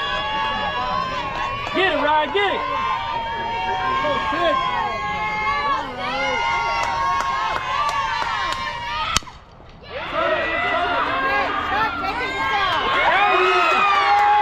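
Young women shout and cheer from around an outdoor field.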